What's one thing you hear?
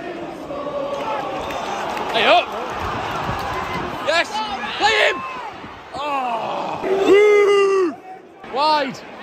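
A crowd roars and whistles in excitement.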